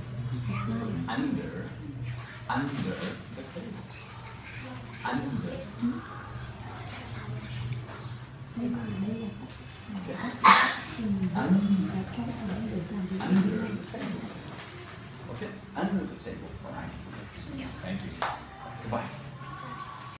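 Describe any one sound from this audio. A young girl answers in a small voice nearby.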